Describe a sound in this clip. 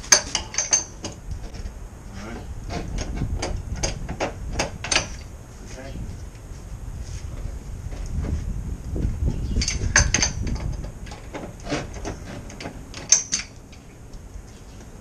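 A wrench clanks and clicks against metal pipes.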